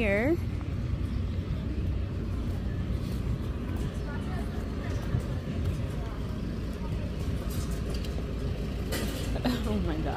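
Footsteps walk over paving.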